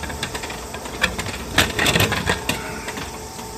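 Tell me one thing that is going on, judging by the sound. A plastic capsule clatters and rattles out of a vending machine chute.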